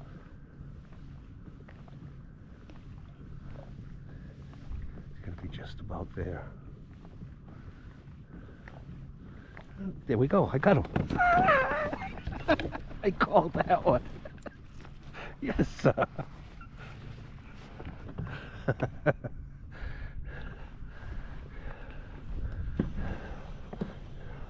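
Water laps gently against a kayak hull.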